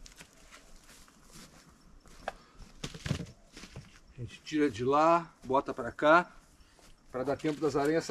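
Dry pine needles crunch underfoot.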